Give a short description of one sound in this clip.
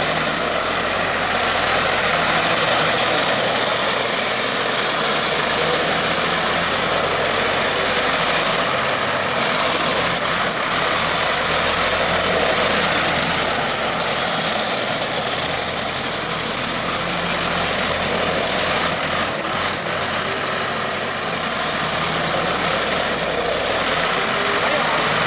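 A tractor engine runs with a steady, loud rumble.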